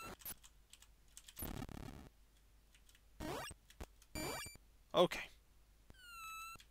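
Retro video game sound effects bleep and chirp in short bursts.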